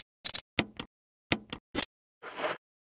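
Menu selections click and beep quickly.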